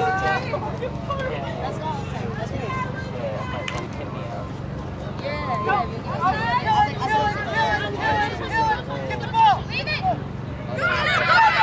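Young women shout and call out to each other across an open field.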